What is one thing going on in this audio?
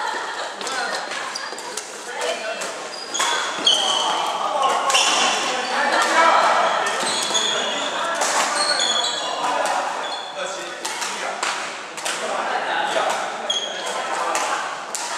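Badminton rackets strike a shuttlecock with sharp pops in a large echoing hall.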